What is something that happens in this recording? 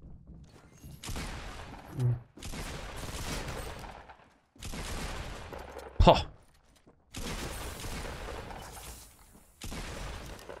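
Gunfire rattles in repeated bursts.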